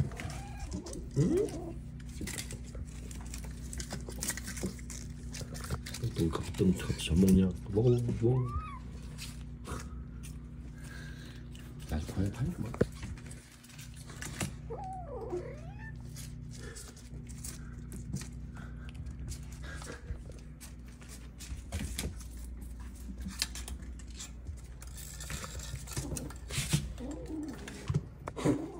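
Kittens mewl in high, short cries close by.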